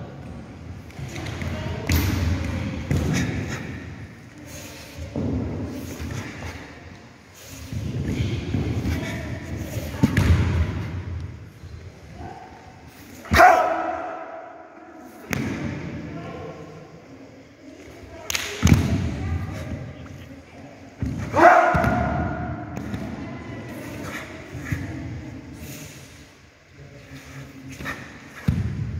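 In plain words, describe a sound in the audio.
Bare feet stamp and slide on a wooden floor.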